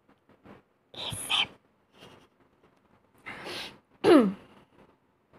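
A young woman laughs close to the microphone.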